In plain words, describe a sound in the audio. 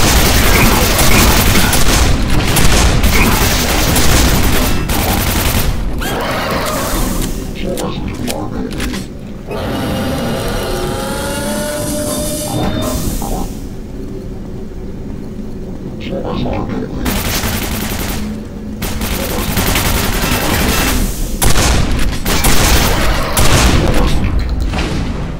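A shotgun fires loud, booming blasts.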